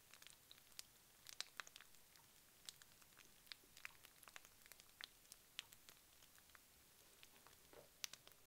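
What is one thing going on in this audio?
Puffed rice crackles and pops softly.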